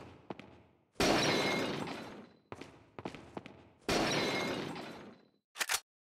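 A clay pot shatters into pieces with a loud crash.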